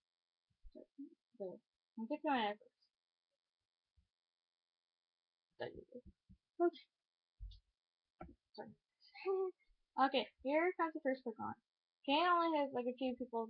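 A young girl talks and sings playfully close by, heard through a computer microphone.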